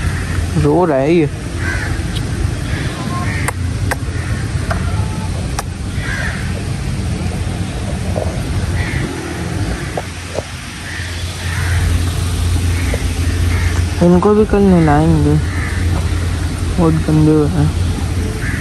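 A calf bawls loudly nearby.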